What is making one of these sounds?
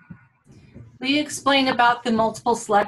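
A woman speaks calmly into a microphone, heard as if over an online call.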